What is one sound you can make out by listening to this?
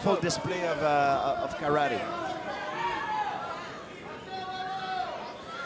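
A crowd murmurs in a large, echoing hall.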